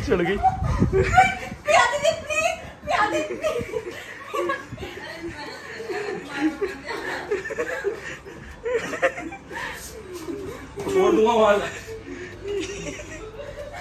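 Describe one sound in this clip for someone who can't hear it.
Bedsheets rustle as people wrestle on a bed.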